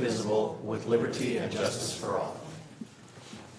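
A group of adults recites in unison, heard through room microphones.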